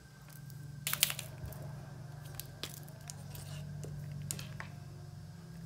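A marker cap clicks open and shut.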